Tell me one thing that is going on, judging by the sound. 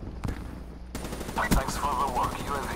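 An automatic rifle fires a rapid burst.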